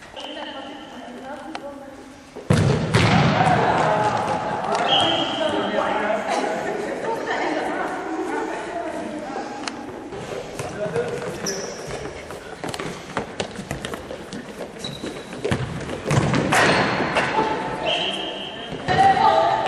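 Shoes squeak sharply on a hall floor.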